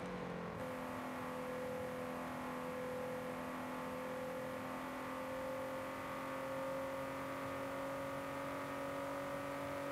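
A sports car engine roars steadily, its pitch slowly rising as it speeds up.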